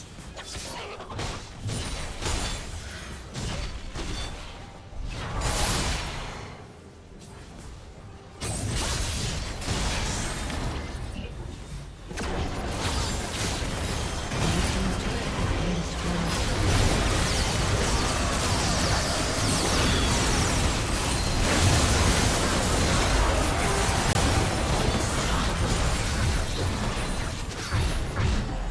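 Magic blasts and weapon strikes crackle and clash in a busy fight, growing denser and louder toward the end.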